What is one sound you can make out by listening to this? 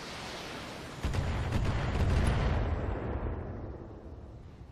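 A heavy explosion booms and rumbles.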